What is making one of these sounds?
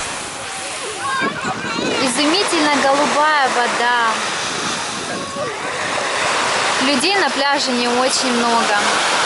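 Children shout and call out playfully nearby outdoors.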